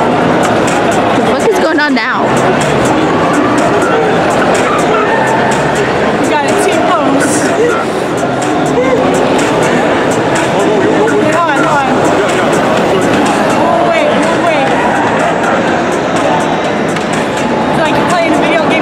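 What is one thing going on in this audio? Many people chatter in a large echoing hall.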